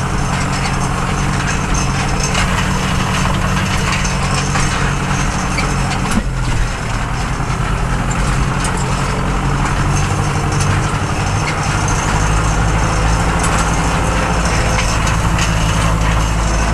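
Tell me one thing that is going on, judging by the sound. A tractor cab rattles and clatters over bumpy ground.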